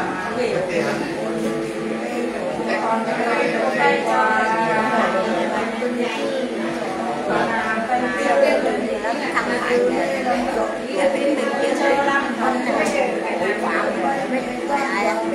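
An elderly woman sings a chant up close.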